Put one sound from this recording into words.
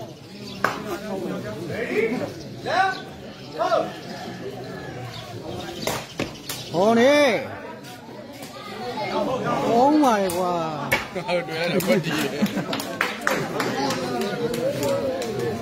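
A woven ball is kicked with sharp thuds.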